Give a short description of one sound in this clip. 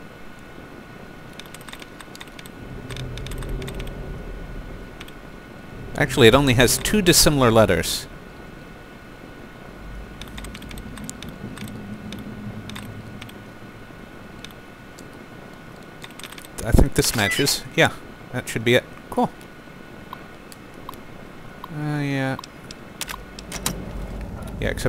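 A computer terminal gives short electronic clicks.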